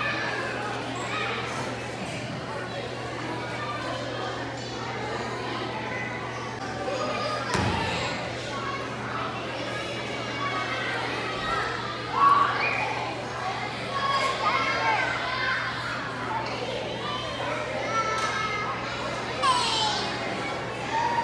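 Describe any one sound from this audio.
Many children chatter and shout in a large echoing room.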